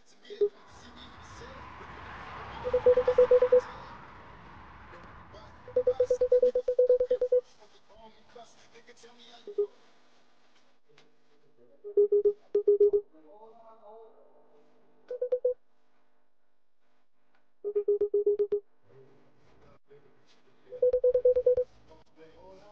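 Short, rapid electronic blips chatter in bursts, like typed dialogue in a video game.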